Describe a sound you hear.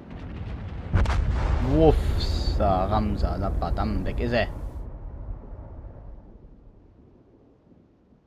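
Shells explode with loud blasts and rumbling.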